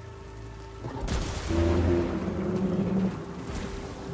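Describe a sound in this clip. A gun fires energy bolts with bright zapping bursts.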